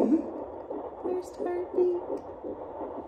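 A young woman talks playfully close by.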